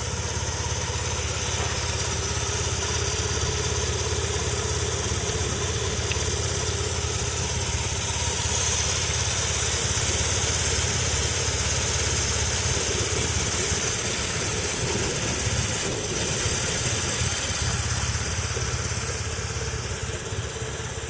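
A motorcycle engine idles with a steady, deep rumble close by.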